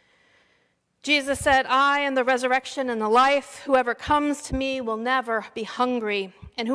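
A middle-aged woman sings through a microphone.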